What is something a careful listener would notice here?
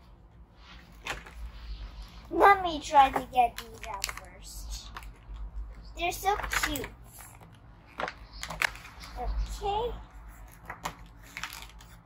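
Plastic packaging crinkles and clicks in a young girl's hands.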